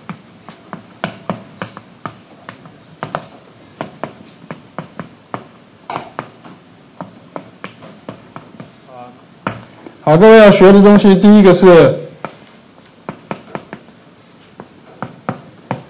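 Chalk taps and scratches on a blackboard in quick, uneven clicks.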